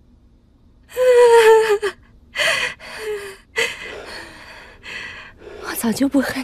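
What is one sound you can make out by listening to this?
A young woman sobs quietly.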